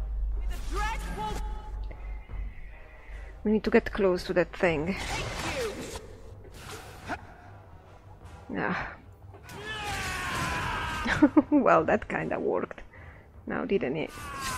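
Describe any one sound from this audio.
Magic spells burst and crackle in a fight.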